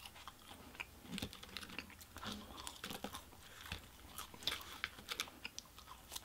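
A plastic fork scrapes and clicks against food.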